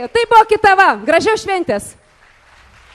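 A woman sings into a microphone on a loudspeaker.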